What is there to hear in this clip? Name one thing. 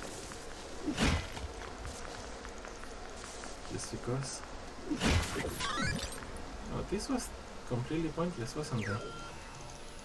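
Sharp game sound effects of blows and slashes ring out.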